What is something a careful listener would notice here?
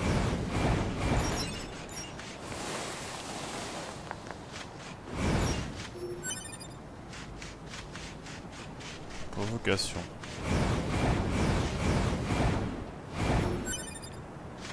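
Blades swing and strike with sharp metallic hits.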